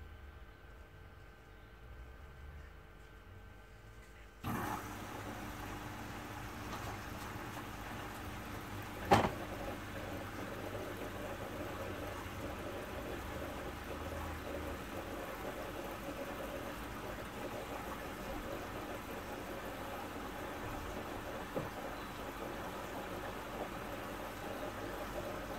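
A washing machine drum turns slowly.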